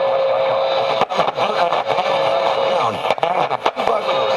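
A radio's sound crackles and cuts in and out.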